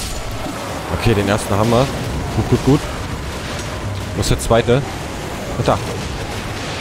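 A beast growls and snarls loudly.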